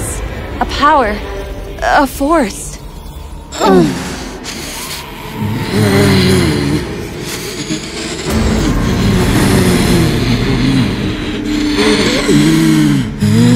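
A young woman speaks tensely and with emotion, close by.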